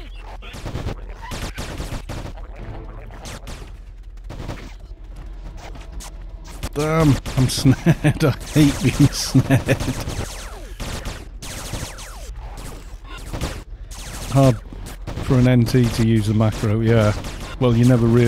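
Game spell effects crackle and burst in a busy battle.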